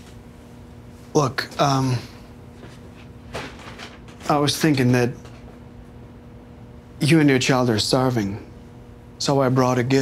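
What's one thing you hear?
A man speaks hesitantly and calmly nearby.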